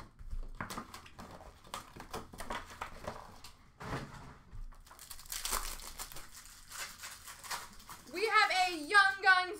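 Plastic wrappers crinkle and rustle as card packs are handled.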